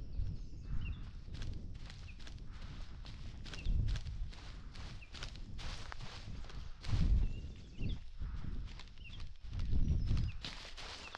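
A man speaks quietly into a microphone.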